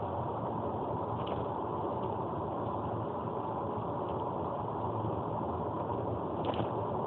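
Tyres roar steadily on asphalt.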